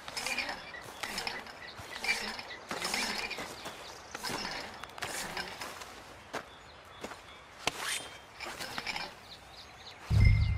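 Footsteps crunch over snowy gravel.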